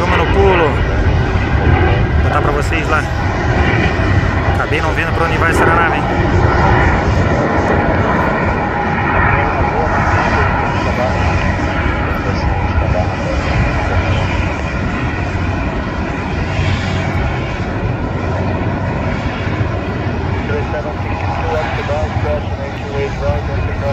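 A jet airliner roars as it climbs away overhead.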